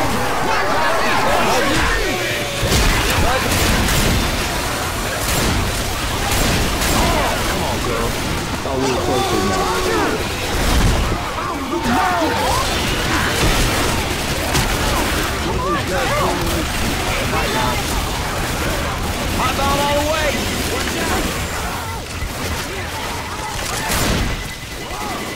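Shotgun blasts ring out in quick bursts.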